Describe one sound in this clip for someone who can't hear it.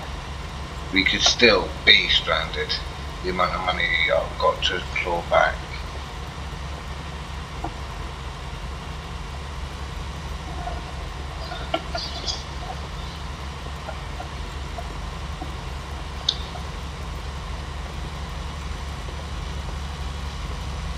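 A tractor engine drones steadily at a low pitch.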